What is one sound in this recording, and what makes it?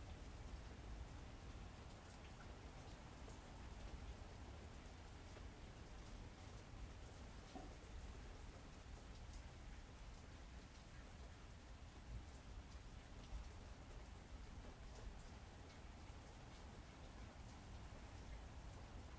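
Laptop keys click softly.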